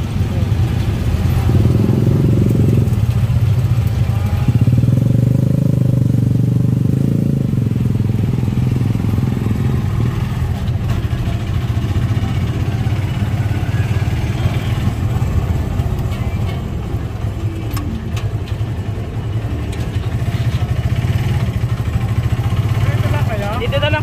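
A small motorcycle engine rumbles steadily close by as the vehicle rides along.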